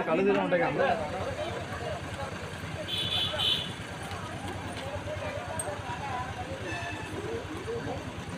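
A crowd of people talks outdoors in the background.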